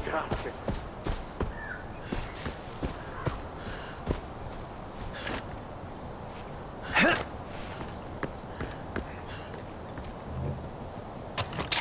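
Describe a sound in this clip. Footsteps tread steadily over grass and rocky ground.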